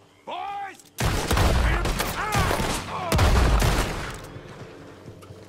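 Gunshots boom loudly, echoing.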